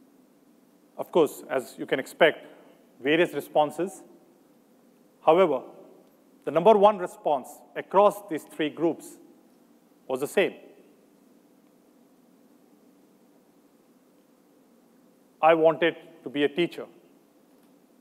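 A man speaks calmly into a microphone, heard through loudspeakers in a large hall, with pauses.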